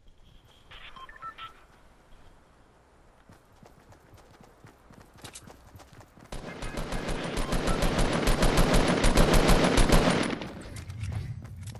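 Footsteps patter quickly across grass.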